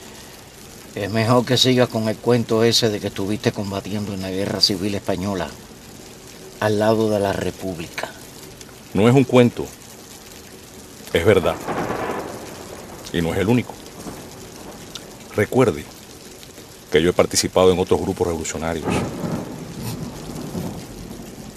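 An older man speaks calmly and close by, pausing between phrases.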